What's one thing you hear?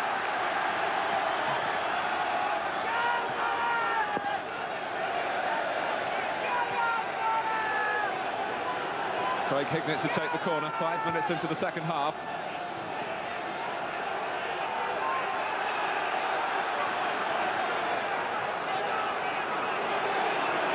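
A large stadium crowd chants and sings loudly throughout.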